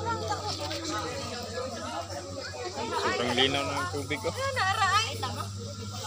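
Water splashes around swimmers.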